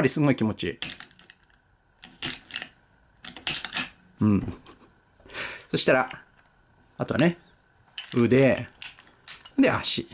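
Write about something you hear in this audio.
Plastic toy parts click and rattle as hands handle them.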